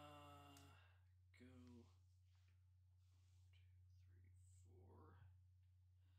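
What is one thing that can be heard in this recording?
A small plastic game piece taps and slides on a board.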